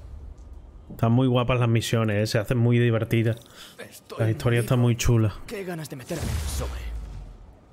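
A young man speaks with animation through a microphone.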